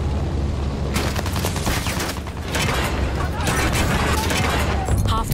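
Bombs explode below with loud rumbling blasts.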